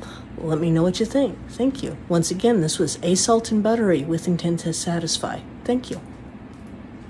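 A middle-aged woman talks with animation close to a phone's microphone.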